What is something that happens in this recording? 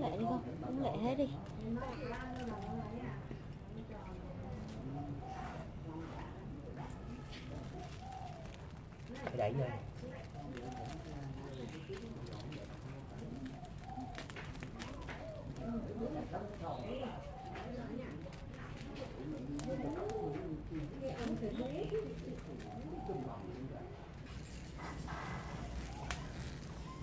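A straw fire crackles and roars steadily.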